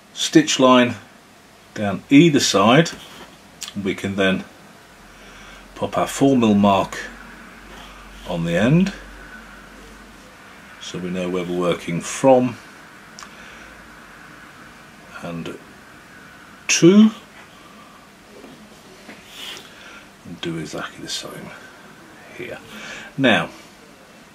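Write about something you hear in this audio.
A blade scores and cuts through leather in short strokes.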